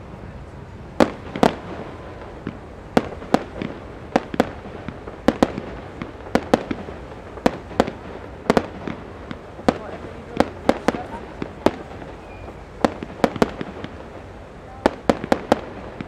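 Fireworks crackle and pop in quick bursts far off.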